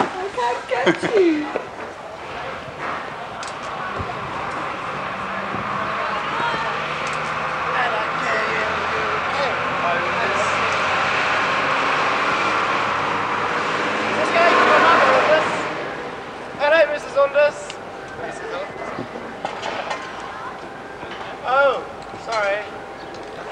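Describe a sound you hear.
Men talk outdoors at a distance.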